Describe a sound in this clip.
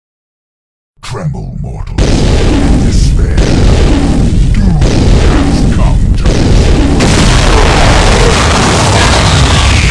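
A huge energy blast roars and crackles loudly.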